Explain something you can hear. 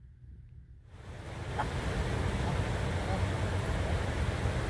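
A shallow river rushes over stones nearby.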